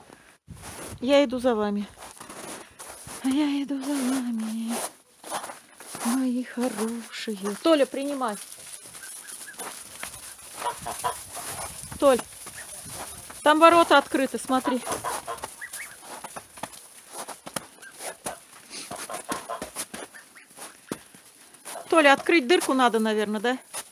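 Geese honk loudly and repeatedly close by.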